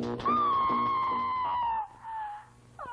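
A woman screams in terror.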